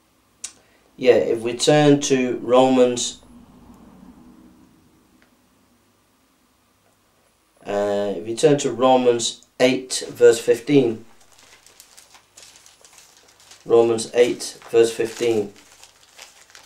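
A middle-aged man reads aloud calmly, close by.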